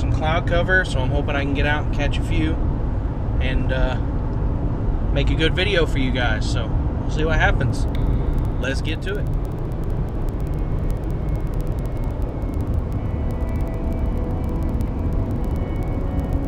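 A car engine and tyres rumble steadily on the road.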